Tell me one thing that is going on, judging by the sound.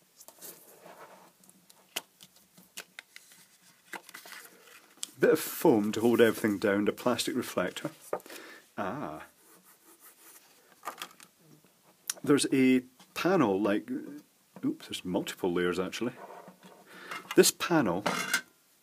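Plastic parts click and scrape as they are handled close by.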